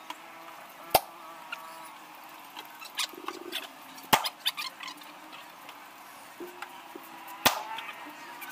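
A wooden pole knocks sharply on a hard floor a few times.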